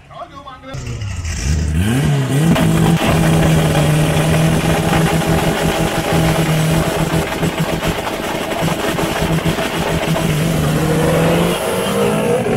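A car engine idles with a loud, steady rumble close by.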